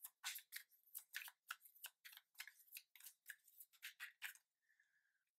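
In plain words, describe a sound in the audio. Playing cards click softly as they are handled.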